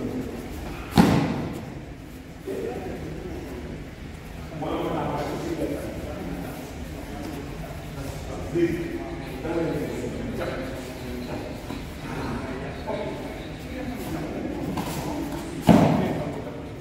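Bare feet stamp and thud on a mat.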